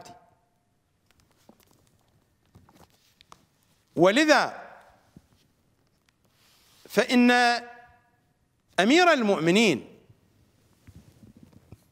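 Book pages rustle as a man turns them.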